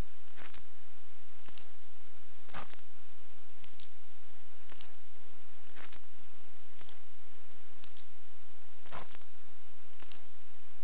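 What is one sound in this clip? Short game interface clicks sound at a steady, regular pace.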